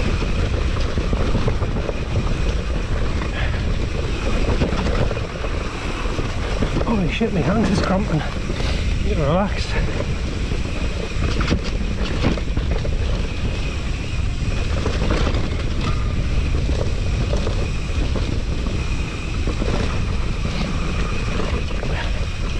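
Bicycle tyres rumble over a bumpy grass track.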